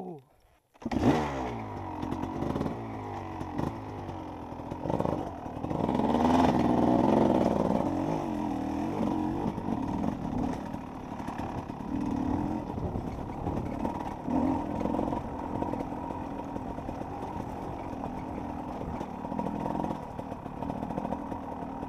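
A dirt bike engine revs and roars up close.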